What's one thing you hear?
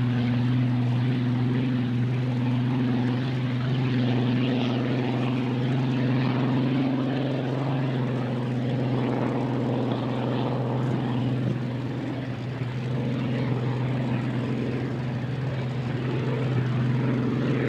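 Spray hisses behind a speeding boat.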